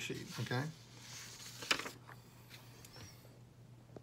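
A sheet of paper rustles as a page is turned.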